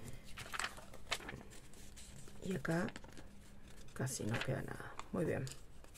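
Paper rustles as a sheet is handled and bent.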